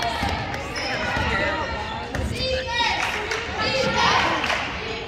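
Young women shout and call out to each other in an echoing gym.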